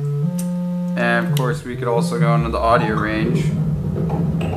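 A synthesizer sound sweeps up and down in tone.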